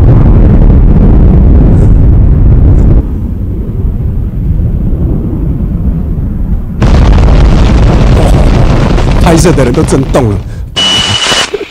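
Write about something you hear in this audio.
Explosions rumble loudly through loudspeakers.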